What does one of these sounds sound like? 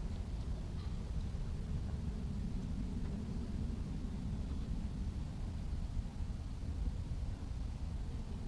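A fishing reel clicks as it is wound in.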